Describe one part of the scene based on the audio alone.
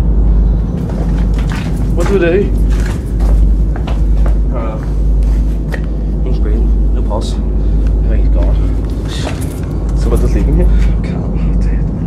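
A young man talks and laughs excitedly close by.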